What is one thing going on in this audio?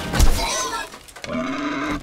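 A boar grunts nearby.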